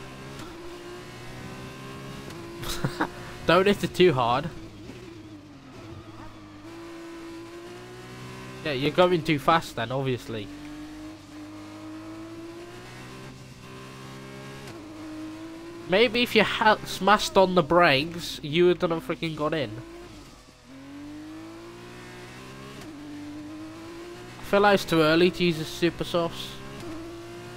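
A racing car engine whines steadily, rising and falling in pitch as it shifts gears.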